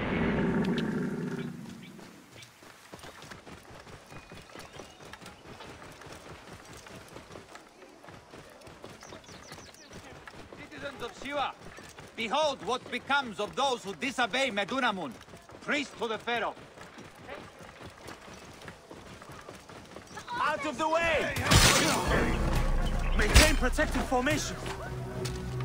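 A camel's hooves thud on a dusty track.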